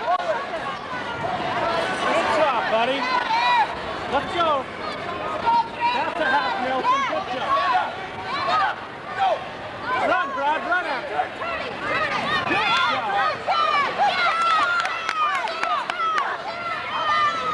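A crowd of children and adults shouts and cheers in a large echoing hall.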